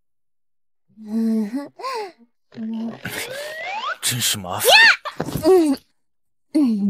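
A young woman speaks with annoyance, close by.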